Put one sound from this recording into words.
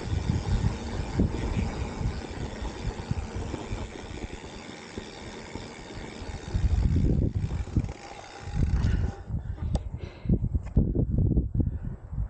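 Mountain bike tyres rumble and rattle over a dry dirt trail.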